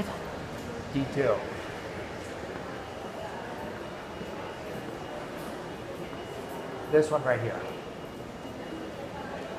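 A lift hums steadily as it moves.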